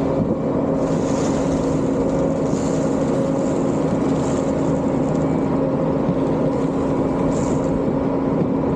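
Sand or salt pours from a loader bucket with a hissing rush.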